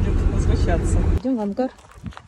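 A car engine rumbles from inside the car.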